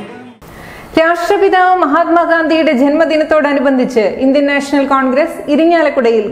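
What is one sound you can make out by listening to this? A woman reads out calmly into a microphone.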